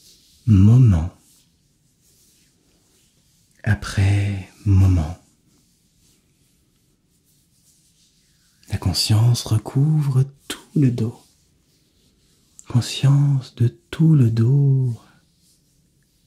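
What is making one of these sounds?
A young man speaks softly and calmly close to a microphone.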